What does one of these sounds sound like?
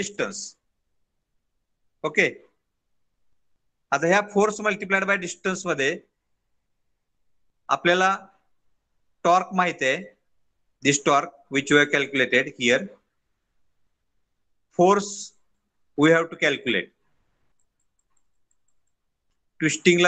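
A man explains calmly, heard through a microphone on an online call, in short bursts with pauses.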